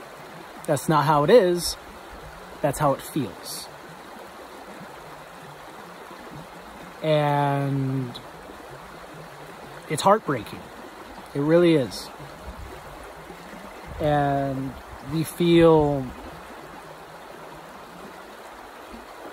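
A stream gurgles softly in the background.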